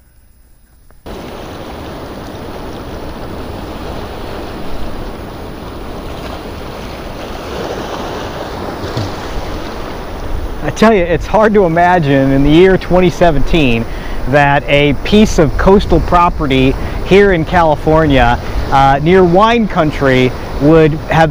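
Waves wash and break over rocks close by.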